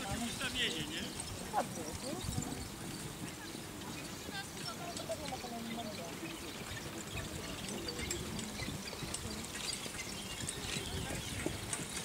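Horse hooves thud softly on grass at a trot.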